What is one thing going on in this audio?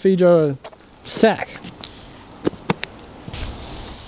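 Shoes tap on pavement as a woman walks.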